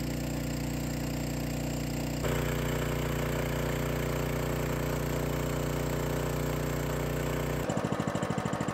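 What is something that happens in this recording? A small pump engine runs with a steady, loud drone.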